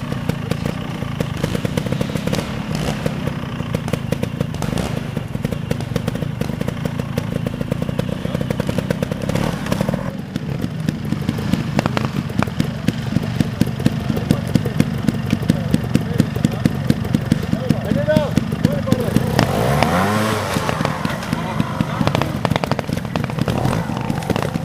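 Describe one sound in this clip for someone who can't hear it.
A small motorcycle engine putters and revs in short bursts, close by.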